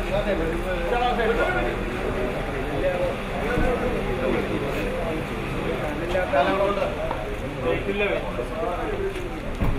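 A group of men and women sing slowly together nearby.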